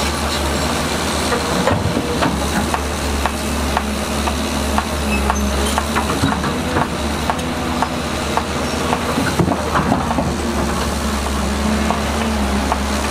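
Bulldozer tracks clank and squeak over rocky ground.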